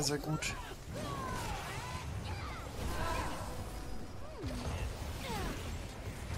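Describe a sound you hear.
Game battle effects whoosh, zap and clash in a busy skirmish.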